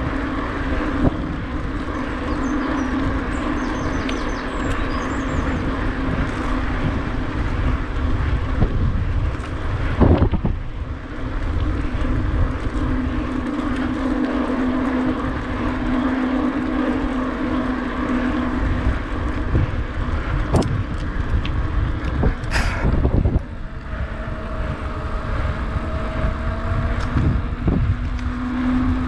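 Wind rumbles past the rider.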